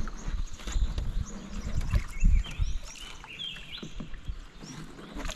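Water splashes and laps against a small boat.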